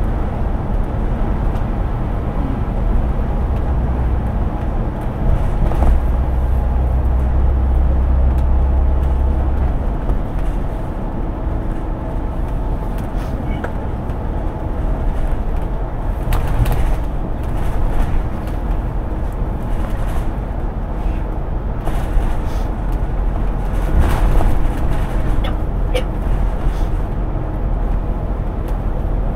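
Tyres roar on a highway road surface.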